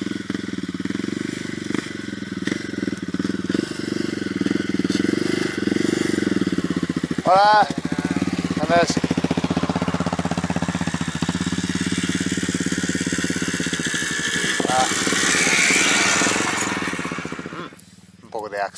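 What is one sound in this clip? A motorbike engine hums and revs up close.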